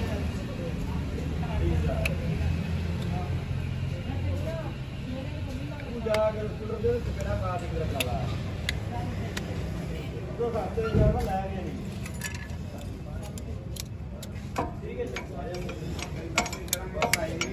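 Metal parts clink and tap as they are handled.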